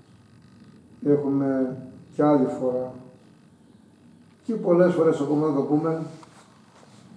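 An older man sings loudly nearby in short phrases.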